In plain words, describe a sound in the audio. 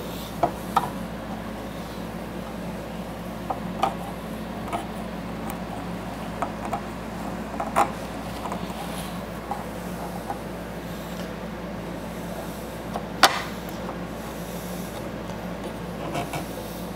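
Metal clamps click and clank as they are adjusted.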